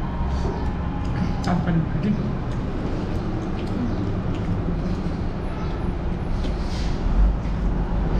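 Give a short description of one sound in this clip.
Fingers squish and mix rice on a metal plate.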